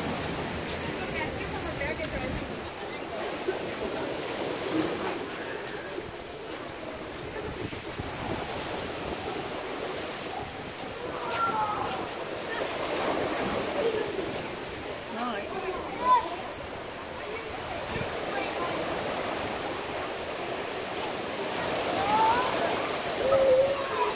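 Several women chat and call out nearby outdoors.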